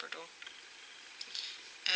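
Small plastic toy figures clack softly as a hand picks them up.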